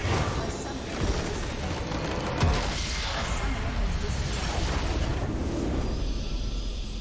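A structure crumbles and explodes with a loud rumbling crash.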